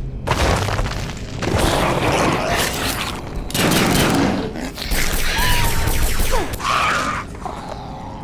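Gunshots crackle rapidly in a fight.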